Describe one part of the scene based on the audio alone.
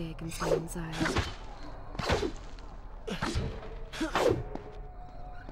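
A shimmering magical whoosh sweeps past several times.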